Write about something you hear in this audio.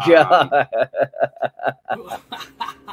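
A man laughs loudly in quick bursts over an online call.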